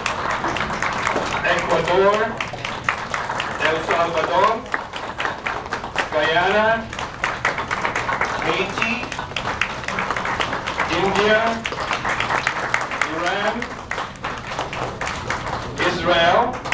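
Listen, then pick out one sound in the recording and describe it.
A crowd of men and women sings together in a large room.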